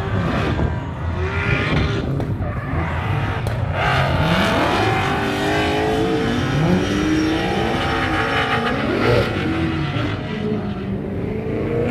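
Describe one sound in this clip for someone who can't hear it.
Tyres screech on tarmac as a car drifts.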